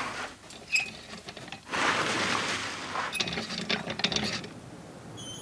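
Trolley wheels roll across a floor.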